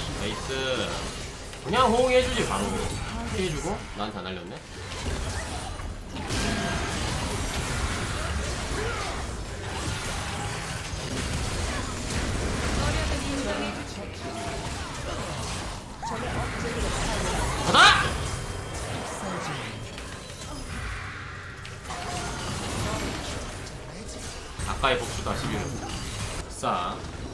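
Game spells and hits crackle and whoosh.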